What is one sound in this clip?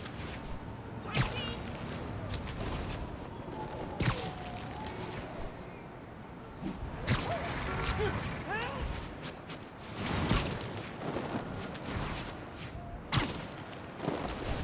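Air whooshes in quick bursts as a figure swings fast through the air.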